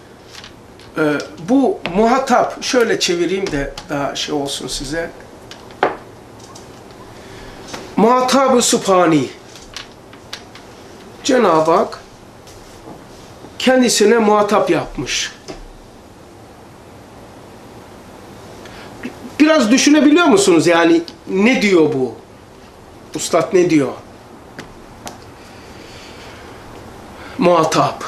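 An elderly man speaks calmly and closely into a microphone, in short phrases with pauses.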